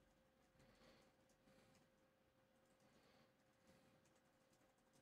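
Liquid pours from a flask and hisses as it boils off.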